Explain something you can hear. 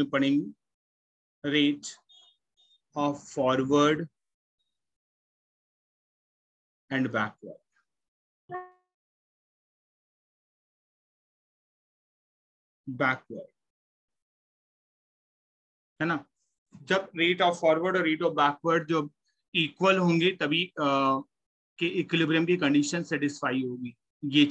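A young man speaks calmly into a microphone, heard as if over an online call, with pauses.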